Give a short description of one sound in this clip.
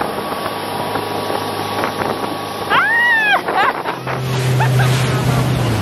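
Water churns and hisses in a motorboat's wake.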